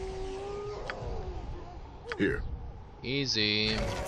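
A fire spell bursts with a whoosh.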